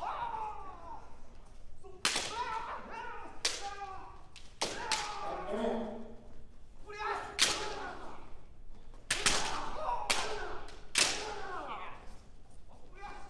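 Fencers shout loudly with strained voices in a large echoing hall.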